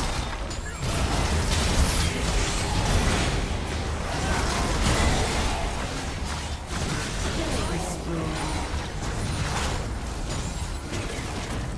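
Game spell effects crackle and blast in a dense, busy fight.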